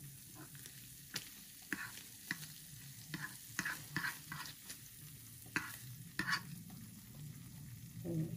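A metal spatula scrapes and taps against a plate.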